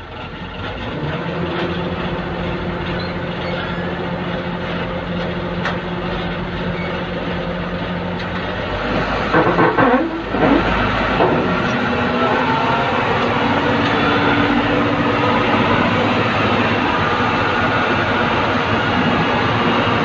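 A hydraulic lift whines steadily as a heavy metal bin tilts.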